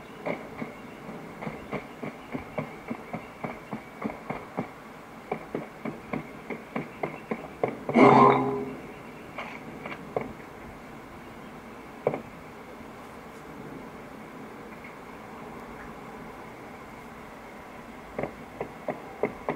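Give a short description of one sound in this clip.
Rapid gunshots play from a phone game's small speaker.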